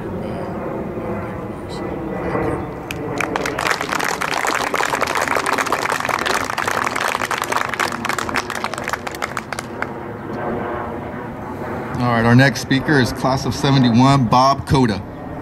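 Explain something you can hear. An older man speaks into a microphone over a loudspeaker outdoors.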